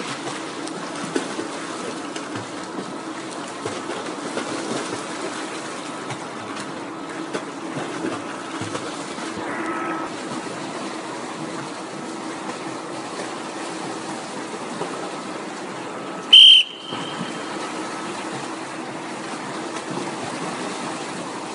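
Swimmers splash and kick through the water in a large echoing hall.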